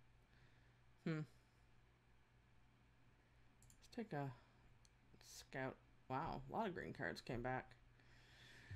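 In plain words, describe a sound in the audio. A woman speaks casually into a microphone, heard close.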